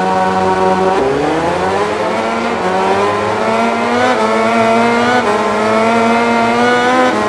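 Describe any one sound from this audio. A motorcycle engine revs up sharply as it races away, climbing through the gears.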